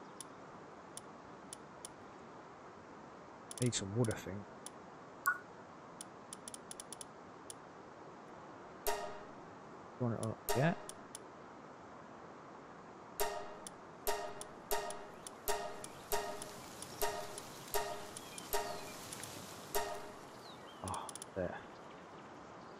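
Game menu clicks tick sharply, one after another.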